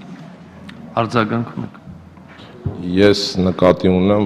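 A middle-aged man speaks forcefully into a microphone in a large echoing hall.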